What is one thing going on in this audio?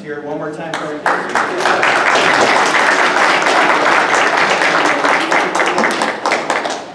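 An audience claps loudly in a large, echoing hall.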